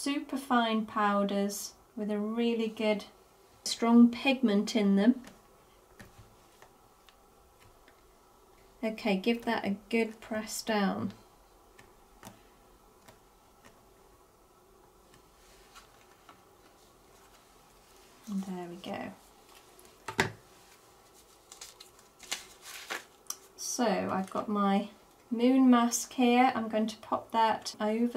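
Paper rustles softly as hands handle it.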